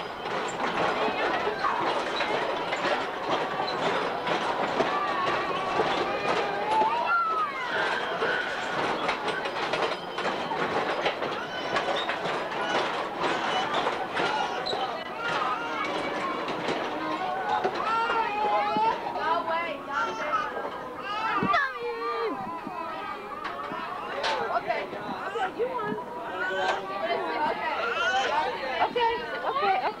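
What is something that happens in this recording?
Young children shout and chatter excitedly close by.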